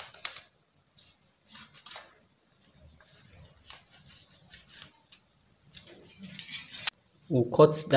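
A metal ruler scrapes and slides across fabric.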